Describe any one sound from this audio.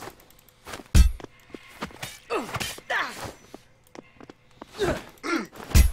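A crowbar swings and strikes with a heavy thud.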